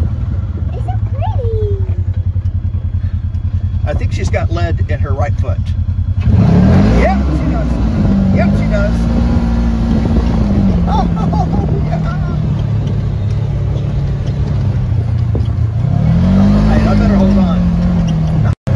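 An engine hums steadily and revs up and down as a small vehicle drives along.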